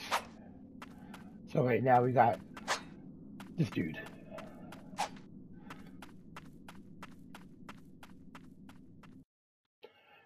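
Light footsteps patter quickly on stone.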